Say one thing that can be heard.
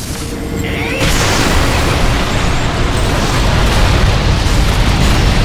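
Fiery explosions roar.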